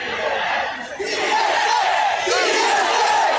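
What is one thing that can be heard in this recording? Many fans nearby chant and shout together.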